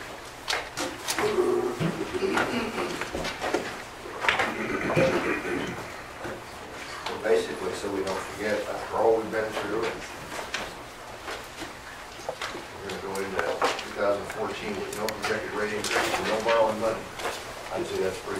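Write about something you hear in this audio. Several men talk with each other.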